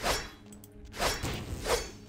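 A magical energy blast crackles and whooshes.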